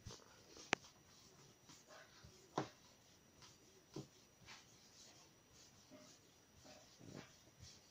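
Hands roll dough softly on a wooden board.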